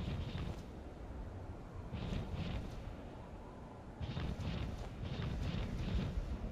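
Fire roars with a low, steady rumble.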